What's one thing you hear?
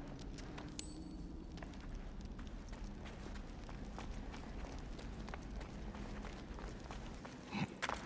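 Footsteps scuff softly on a stone floor.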